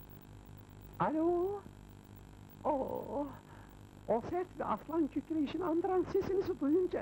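A young man speaks into a telephone with animation, heard close by.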